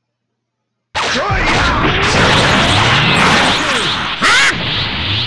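A roaring rush of energy surges loudly and steadily.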